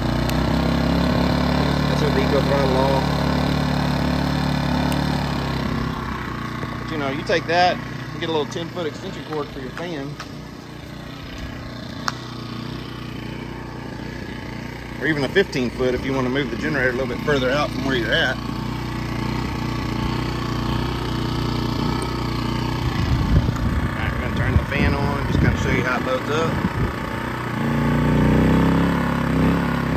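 A small generator engine hums steadily nearby.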